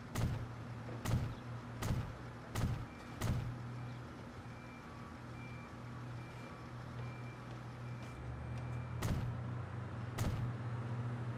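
Short sharp clicks sound as buildings are placed.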